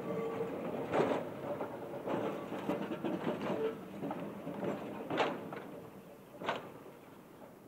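A tram's wheels clack over rail joints.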